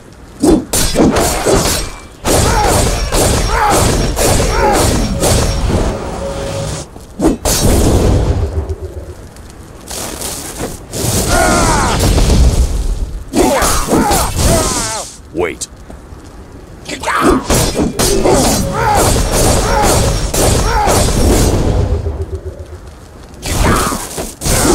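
Magic blasts and weapon strikes crash in quick bursts during a fight.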